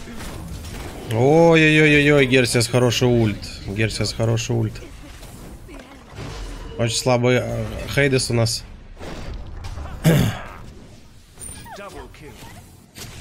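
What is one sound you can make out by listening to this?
Game sound effects of fighting clash and burst.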